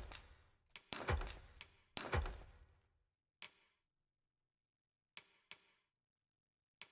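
Soft menu clicks sound as selections change, each with a brief whoosh.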